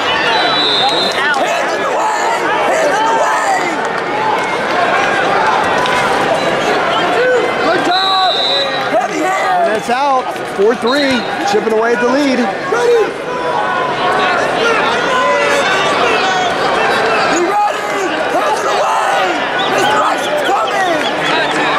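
A large crowd chatters and shouts in a large echoing arena.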